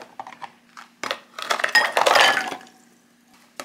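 Rice cakes tumble and splash into a bowl of water.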